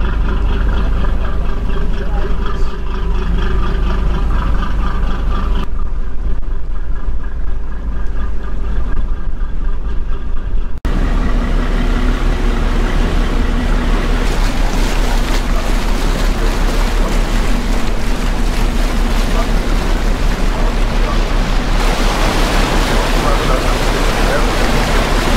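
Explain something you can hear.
A boat engine drones steadily.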